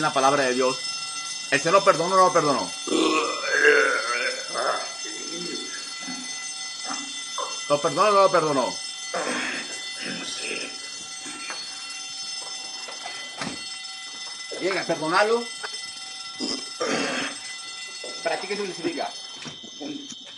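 A young man sobs and wails loudly over an online call.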